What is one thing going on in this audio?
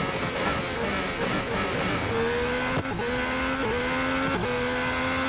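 A racing car engine screams at high revs, dipping briefly with each gear change.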